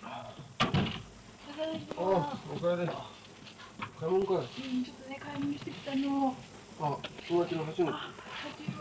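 A young woman talks with a young man nearby.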